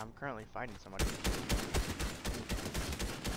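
A video game automatic rifle fires in rapid bursts.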